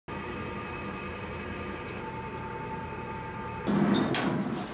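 A potter's wheel hums as it spins.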